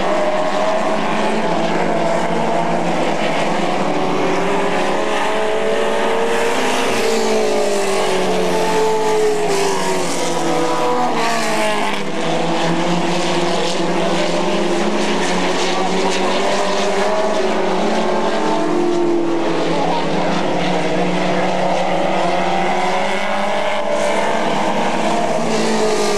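Race car engines roar and rev loudly around a track.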